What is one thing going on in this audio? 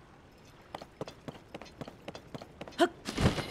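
Quick footsteps patter across stone.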